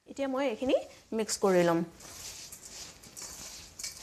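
Hands rustle and stir dry rice grains in a metal bowl.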